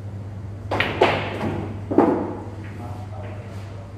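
Billiard balls clack against each other and roll across the table.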